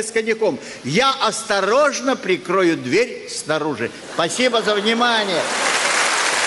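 An elderly man reads out expressively into a microphone.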